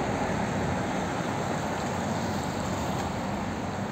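A car drives slowly past close by.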